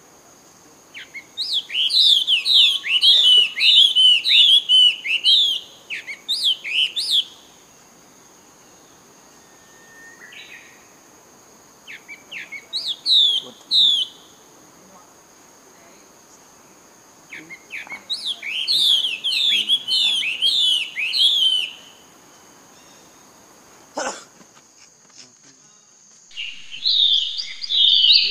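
A baby monkey squeals and cries shrilly in repeated bursts.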